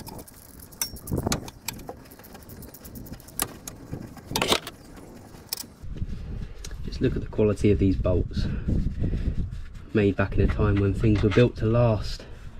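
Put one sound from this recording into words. A metal tool clicks and knocks against metal.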